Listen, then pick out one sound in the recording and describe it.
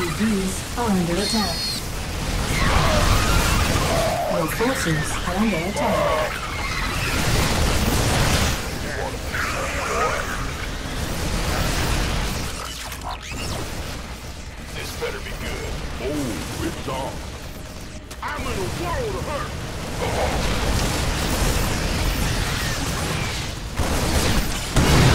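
Explosions boom repeatedly.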